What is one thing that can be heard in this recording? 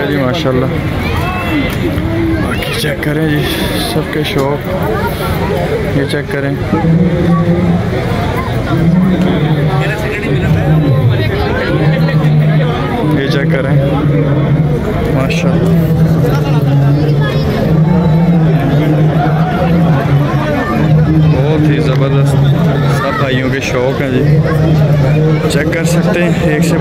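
A crowd of men chatters outdoors.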